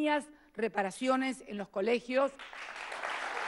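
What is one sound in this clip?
A woman speaks into a microphone in a formal tone.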